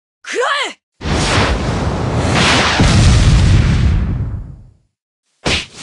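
A heavy blast roars and slowly fades.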